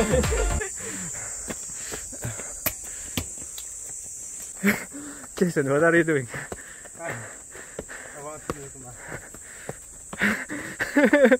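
Young men talk and laugh close by, outdoors.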